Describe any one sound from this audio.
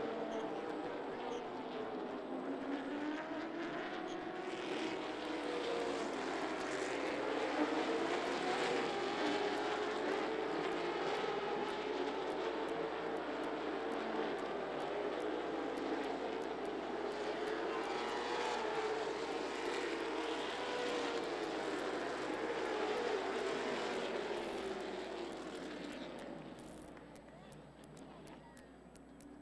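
A race car engine roars loudly, its pitch rising and falling as it speeds around the track.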